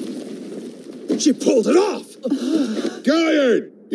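A man speaks tensely.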